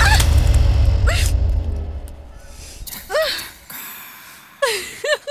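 A young woman whimpers and cries out in distress.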